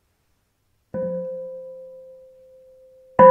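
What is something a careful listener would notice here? A small bell rings once and slowly fades.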